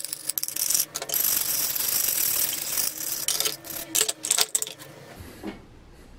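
A stiff wire brush scrubs a metal plate.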